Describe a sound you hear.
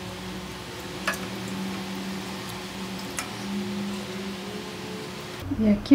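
A ladle scoops soft curds out of a pot of liquid.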